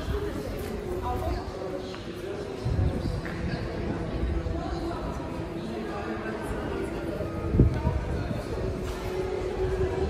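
Shoppers' voices murmur faintly in a large echoing indoor space.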